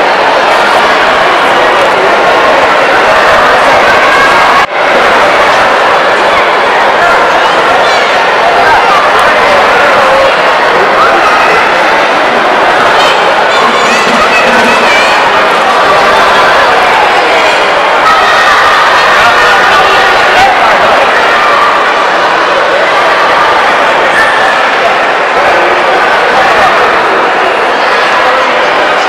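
A crowd of children and adults chatters loudly all around, echoing in a large hall.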